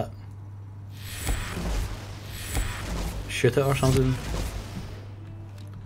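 An energy weapon hums and crackles as it fires.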